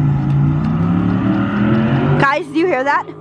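A car engine hums as the car approaches.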